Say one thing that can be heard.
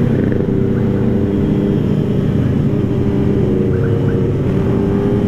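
Other motorcycle engines drone nearby.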